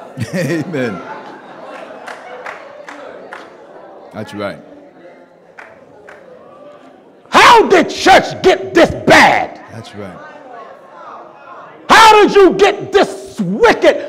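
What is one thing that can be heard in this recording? A man preaches loudly and with passion through a microphone in an echoing hall.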